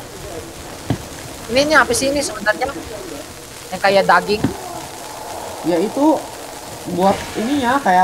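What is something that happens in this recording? Thermite burns with a hissing crackle of sparks.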